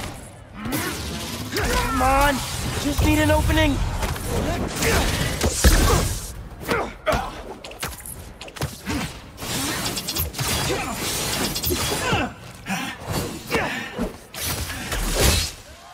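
Energy blasts crackle and hum.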